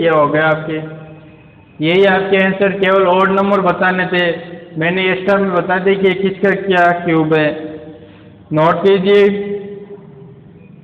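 A man speaks clearly and steadily, close to a microphone, with short pauses.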